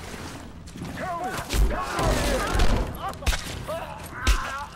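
A man shouts angry demands.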